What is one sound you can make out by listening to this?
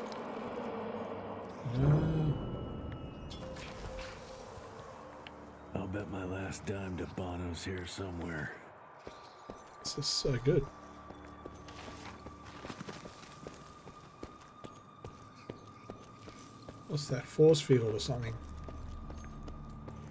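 Footsteps crunch slowly on stone.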